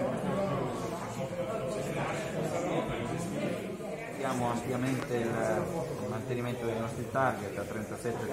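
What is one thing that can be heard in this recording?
A middle-aged man speaks calmly into close microphones.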